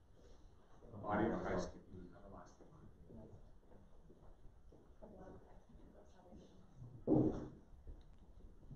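A man speaks briefly and quietly in an echoing hall.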